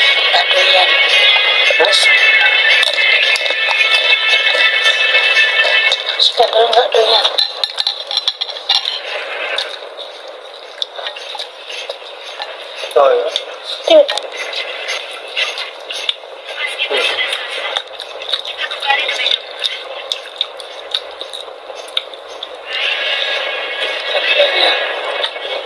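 A young woman chews and slurps food close up.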